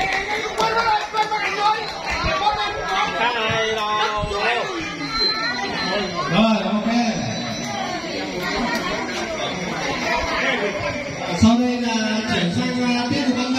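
A crowd of children and adults chatter and call out close by.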